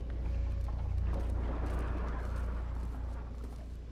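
A drone hums and whirs overhead.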